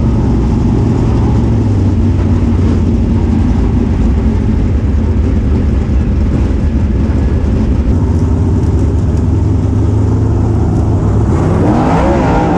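Other race car engines roar nearby.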